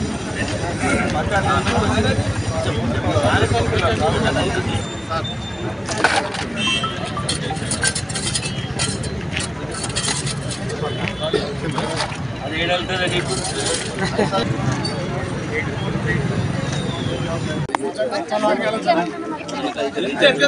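A crowd of people murmurs nearby.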